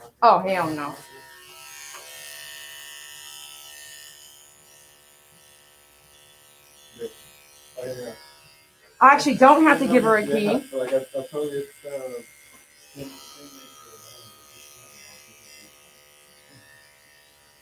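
A hair dryer blows air steadily.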